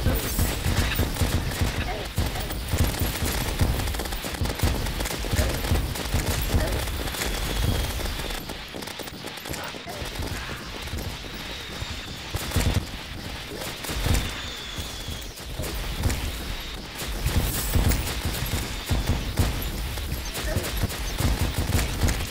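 Video game weapons fire rapid zapping shots.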